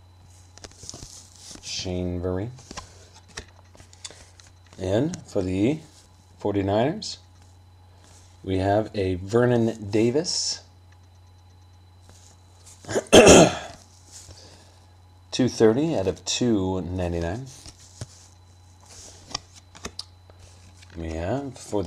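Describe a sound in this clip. Cardboard cards rustle and slide against each other as they are handled.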